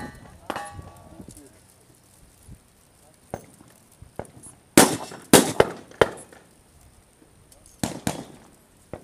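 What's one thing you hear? Metal clicks and knocks as a rifle is handled on a table.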